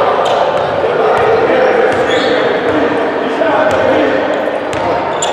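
A crowd of spectators murmurs and calls out in an echoing hall.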